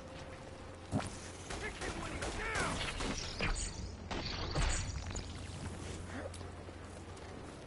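Electric energy blasts crackle and zap in bursts.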